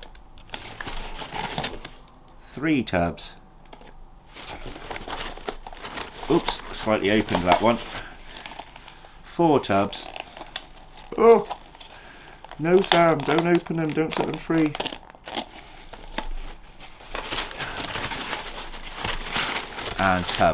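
Cardboard packing paper rustles and crinkles.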